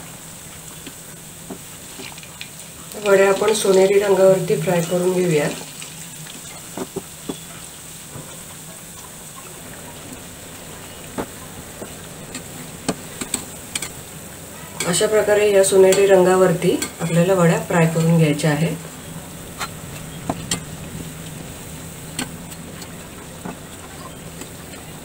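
A metal spoon clinks against a pan.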